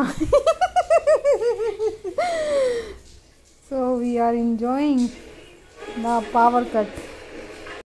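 A young woman coos and talks playfully to a baby close by.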